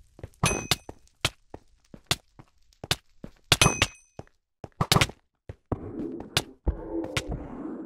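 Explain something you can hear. Sharp punches and sword blows land in quick bursts.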